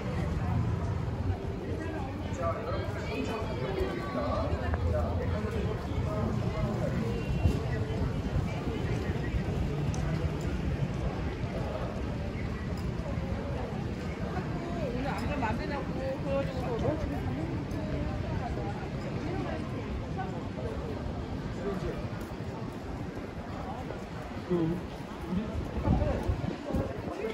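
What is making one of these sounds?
Adult men and women chatter nearby in a busy street.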